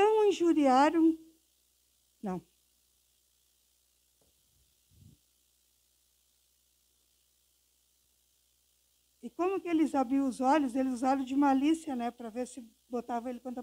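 An elderly woman speaks with feeling into a microphone, pausing between phrases.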